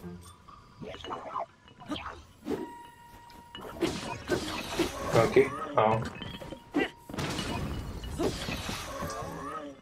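Weapons clash and thud in a scuffle.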